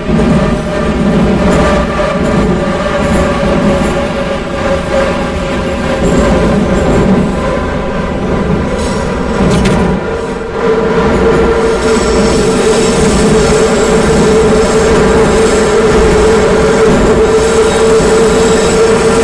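A train's motor whines with a steady hum.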